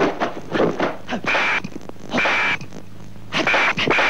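Cymbals clash loudly.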